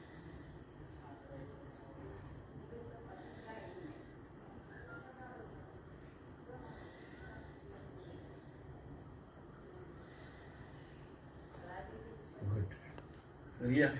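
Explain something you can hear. A man talks quietly nearby.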